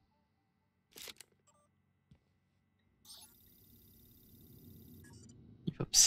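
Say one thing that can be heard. A computer terminal chirps and beeps with short electronic tones.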